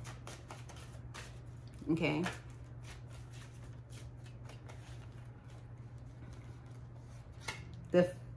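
Playing cards riffle and click as they are shuffled.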